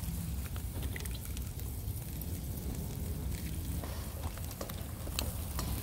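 Eggs sizzle in hot oil in a pan.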